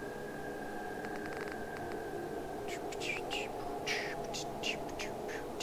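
A handheld device clicks as its dial is turned.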